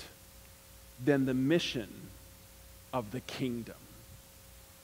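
A middle-aged man speaks in short phrases through a microphone.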